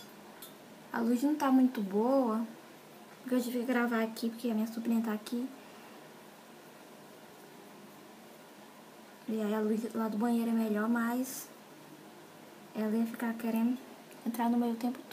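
A young woman talks calmly and close by, in short bursts with pauses.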